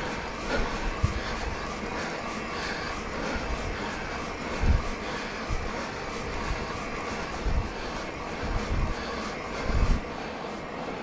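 A bicycle rattles and thumps over bumps.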